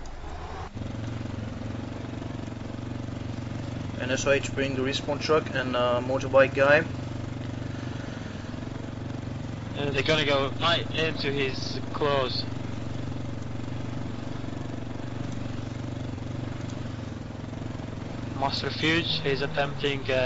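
A motorcycle engine hums steadily as it rides along a dirt road.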